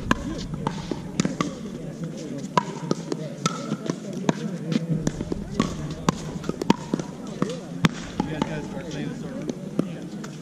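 Paddles hit a plastic ball with sharp hollow pops, back and forth.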